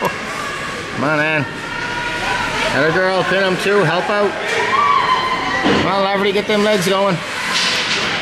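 Young players shout loudly in a large echoing hall.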